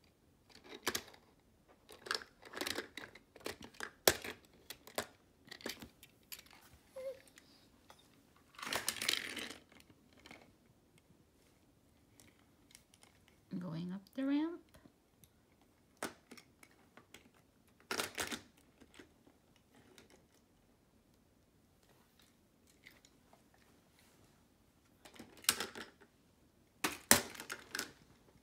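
Small toy cars clack and roll on hard plastic.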